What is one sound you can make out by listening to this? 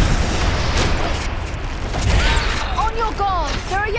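A magic blast crackles and whooshes.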